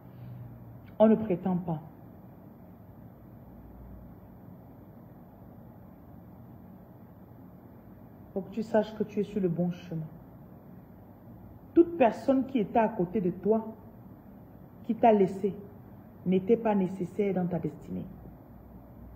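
A woman speaks calmly and close by, in short bursts with pauses.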